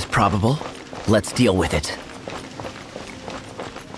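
Footsteps patter on a stone floor.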